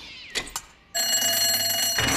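An alarm bell rings loudly and steadily.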